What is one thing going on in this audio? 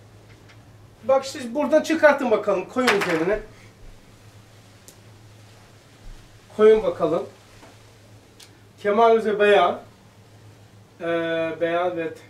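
An elderly man speaks calmly in short phrases, with pauses.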